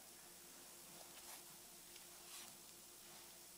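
Paper pages rustle softly as a book is handled and turned.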